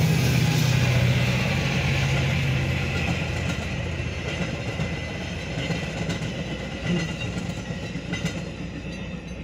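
Passenger cars clatter over the rails.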